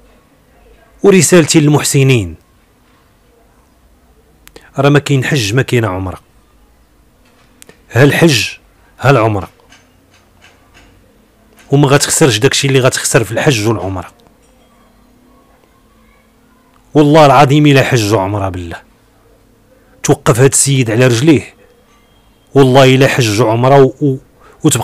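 A middle-aged man speaks close to a microphone in short bursts, with pauses between them.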